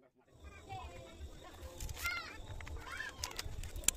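Scissors snip through a plastic bag.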